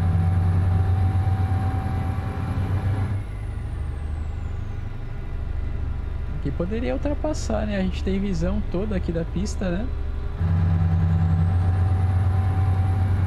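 A truck engine hums with a steady low drone.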